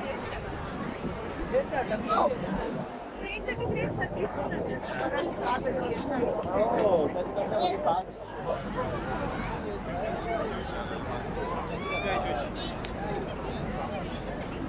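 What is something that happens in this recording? A large crowd chatters all around outdoors.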